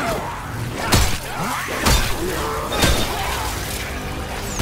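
Heavy blows thud against a body.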